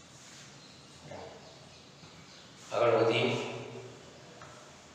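A man speaks briefly and calmly into a headset microphone in an echoing room.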